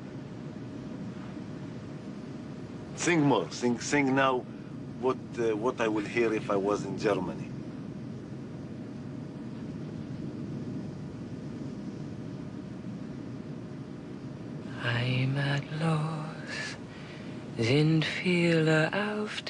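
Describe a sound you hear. An aircraft engine hums steadily in the background.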